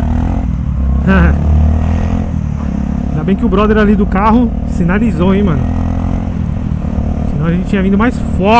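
A motorcycle engine revs up and down in quick bursts.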